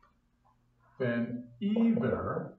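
An older man speaks calmly nearby, lecturing.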